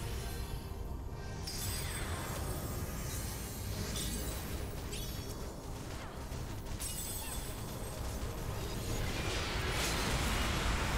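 Magical spell effects whoosh and shimmer.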